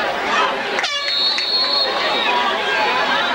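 A referee's whistle blows in a long, shrill blast.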